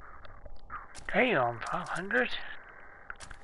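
A young man speaks with excitement close to a microphone.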